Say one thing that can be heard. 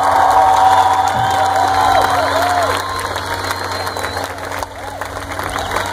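A live band plays loud music through large loudspeakers outdoors.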